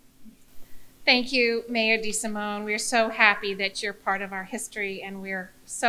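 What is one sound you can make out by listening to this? An older woman speaks warmly into a microphone.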